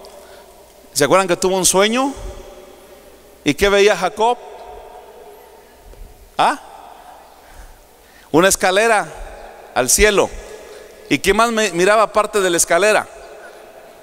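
A man speaks with animation through a microphone, in short bursts, with a slight echo of a hall.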